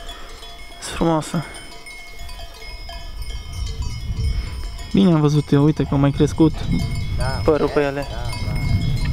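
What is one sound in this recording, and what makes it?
Sheep bleat loudly nearby.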